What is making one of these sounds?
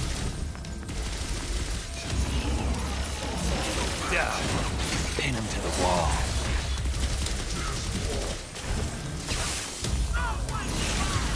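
Blades swish and clang in a fast fight.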